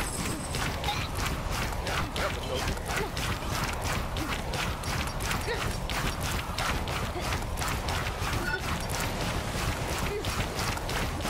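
Game weapons fire in rapid bursts.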